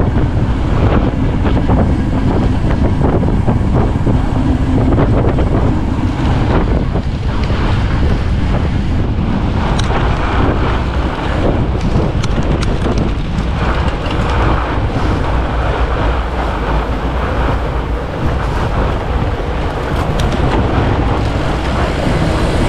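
Fat bike tyres crunch and hiss over packed snow.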